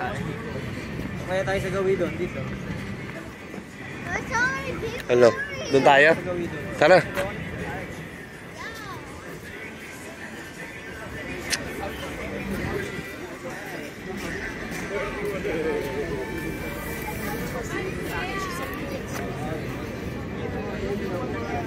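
A crowd of people talks and chatters nearby outdoors.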